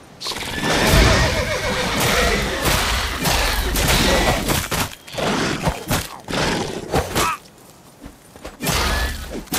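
A sword slashes and strikes in a fight.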